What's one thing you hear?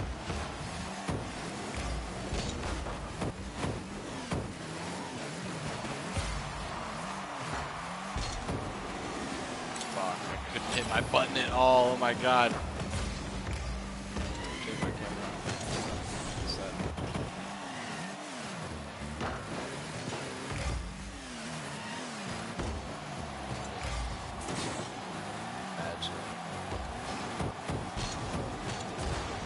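A rocket boost roars in short bursts.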